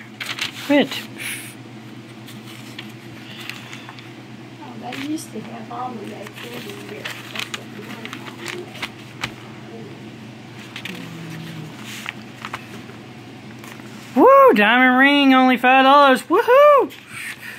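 Thin paper pages rustle and flip as they turn.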